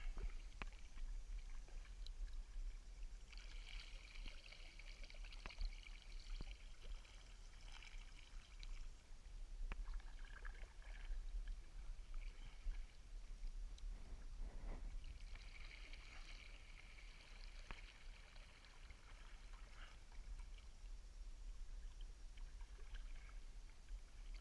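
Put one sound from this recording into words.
Water laps and trickles around a kayak.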